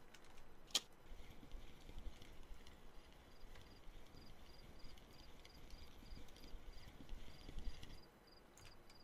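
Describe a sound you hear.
A fishing reel whirs and clicks steadily as line is wound in.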